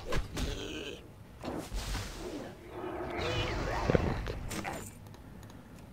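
Blades swing and strike in a fierce fight.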